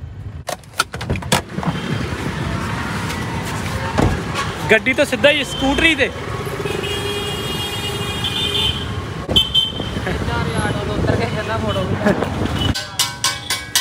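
A scooter engine hums while riding.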